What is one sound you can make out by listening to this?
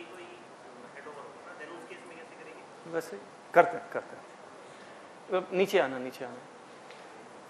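A man speaks nearby, explaining with animation.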